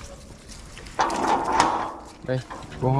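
A metal gate scrapes and rattles close by.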